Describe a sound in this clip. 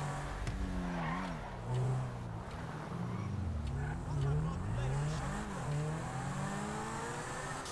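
Tyres screech on asphalt as a car turns sharply.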